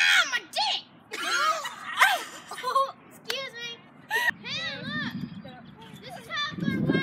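A young woman laughs and squeals excitedly close by.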